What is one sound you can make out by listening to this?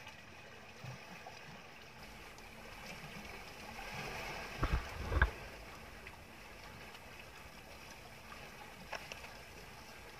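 Waves slosh gently against a boat's hull.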